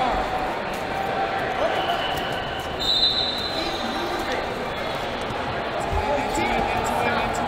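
Wrestlers' shoes squeak and scuff on a mat.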